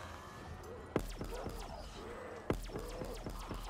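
Guns fire in sharp bursts in a video game.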